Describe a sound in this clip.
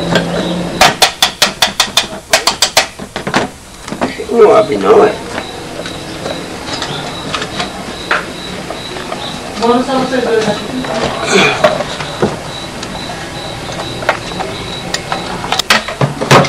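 Small metal tools click and tap against a device.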